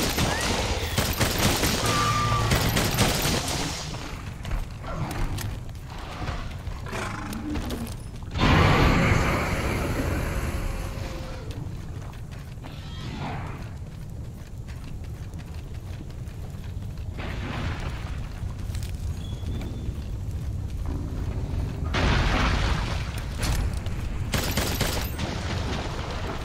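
Molten lava rumbles and hisses with a low, steady roar.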